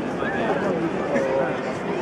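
A man talks on a phone close by.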